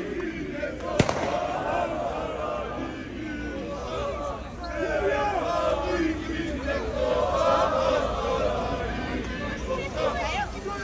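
A large crowd of men sings and chants loudly outdoors.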